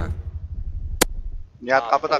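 A gunshot cracks once.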